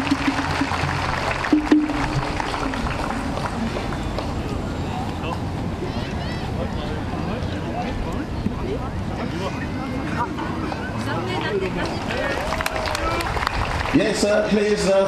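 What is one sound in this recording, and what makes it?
A large crowd chatters and cheers outdoors.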